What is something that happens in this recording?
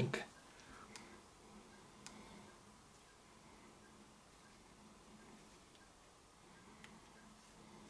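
A small remote control button clicks faintly.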